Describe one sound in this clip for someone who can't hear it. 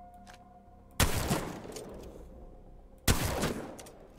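A shotgun fires two loud blasts.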